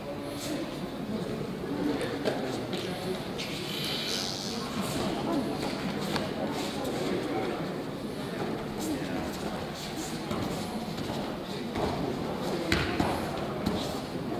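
Bare feet thump and scuffle on a mat.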